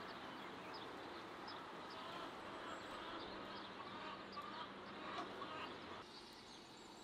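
Meat sizzles on a hot griddle.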